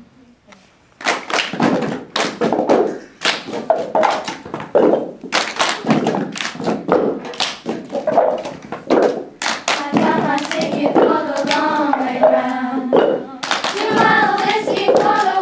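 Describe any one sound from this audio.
Girls clap their hands in rhythm.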